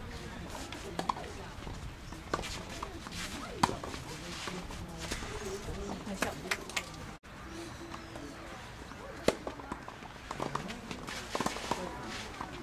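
Tennis balls are struck with sharp pops outdoors.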